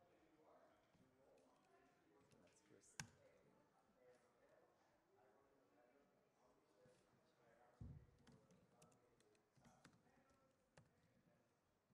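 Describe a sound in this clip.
A man speaks calmly through a microphone in a large room.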